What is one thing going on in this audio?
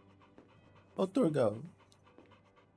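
A small dog barks excitedly.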